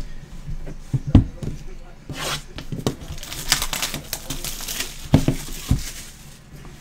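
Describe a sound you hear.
A cardboard box thumps down on a table.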